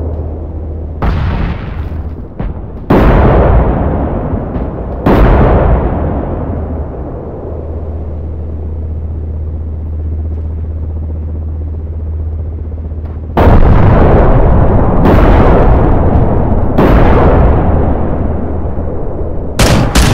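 Heavy explosions boom and rumble away.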